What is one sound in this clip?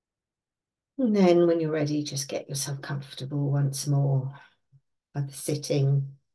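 An older woman speaks calmly and close, as if over an online call.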